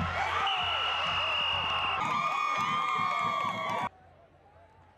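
A crowd of young women cheers and screams loudly.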